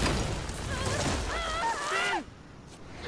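A young woman cries out with strain.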